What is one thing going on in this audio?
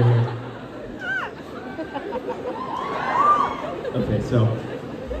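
A young man speaks into a microphone, heard through loudspeakers in a large echoing hall.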